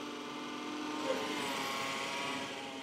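A battery-powered cylinder mower changes pitch as it turns at the end of a lawn.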